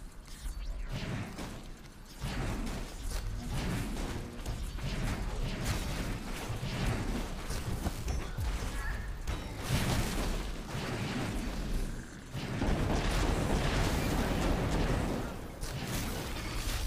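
Electric blasts and magic zaps crackle in quick bursts.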